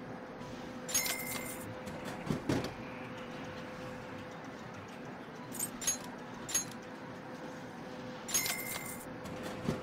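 A bright chime rings as an item is bought.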